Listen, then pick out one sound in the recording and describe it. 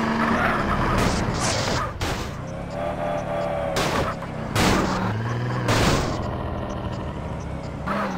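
A car thuds hard against a wall.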